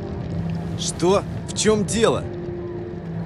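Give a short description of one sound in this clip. A second man answers in a questioning tone.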